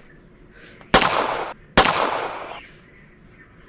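A revolver fires two loud shots that echo and fade.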